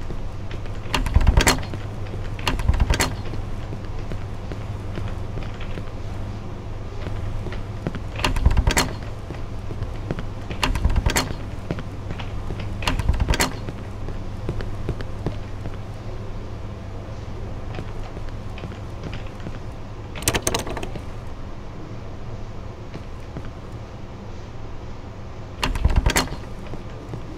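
Doors thud and bang open now and then.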